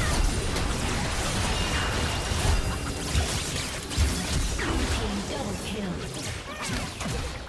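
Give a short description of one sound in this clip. Game spell effects crash and burst in a busy fight.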